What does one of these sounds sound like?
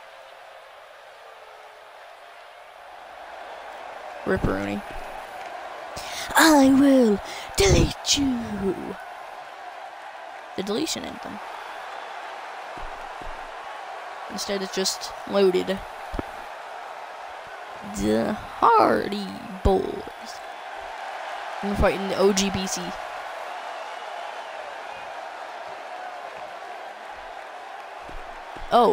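A large crowd cheers and murmurs steadily in a big echoing arena.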